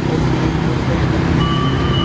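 A motor scooter passes close by.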